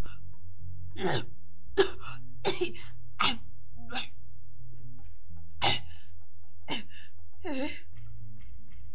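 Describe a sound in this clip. A woman wails loudly and cries out in anguish.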